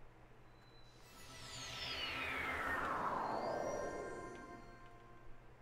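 A shimmering magical whoosh sweeps downward in pitch.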